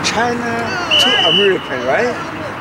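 A referee's whistle blows a short blast.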